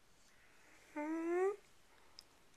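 A young man sings out a short rising note close by.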